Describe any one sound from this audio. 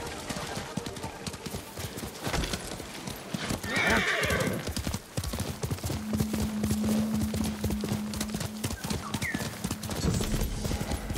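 Hooves gallop steadily over soft ground.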